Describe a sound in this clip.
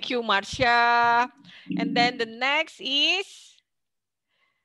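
A young woman speaks with animation over an online call.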